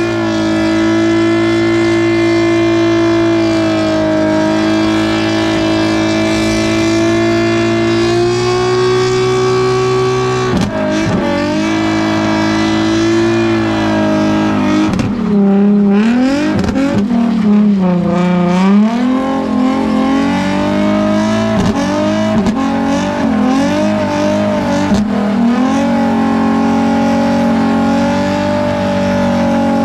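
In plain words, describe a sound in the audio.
Tyres screech as they spin on pavement.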